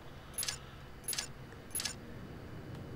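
Short game menu clicks sound as weapons are switched.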